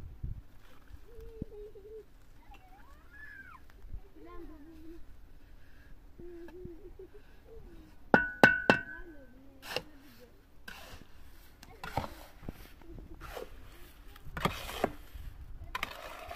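A shovel scrapes and scoops sand in a metal wheelbarrow.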